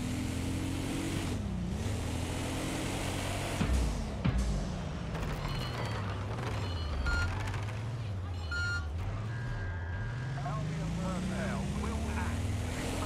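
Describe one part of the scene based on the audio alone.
A heavy armoured vehicle's engine drones and rises and falls in pitch as it drives.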